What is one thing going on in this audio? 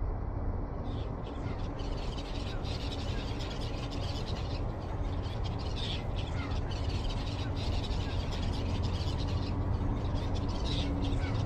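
Birds chirp and call overhead.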